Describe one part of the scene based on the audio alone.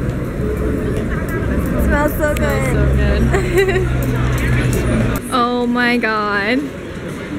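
A young woman talks cheerfully, close by.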